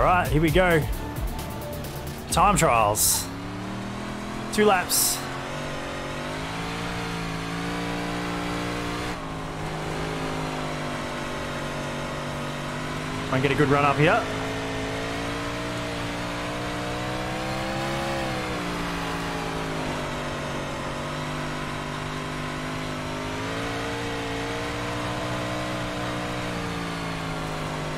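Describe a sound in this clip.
A race car engine drones steadily, rising and falling in pitch.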